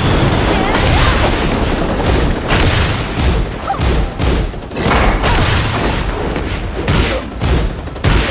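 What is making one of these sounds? Energy blasts crackle and whoosh.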